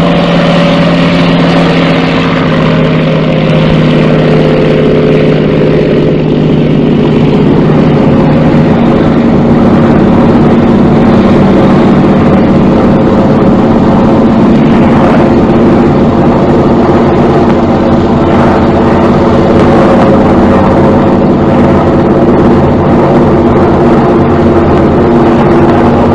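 A propeller aircraft engine drones loudly and steadily.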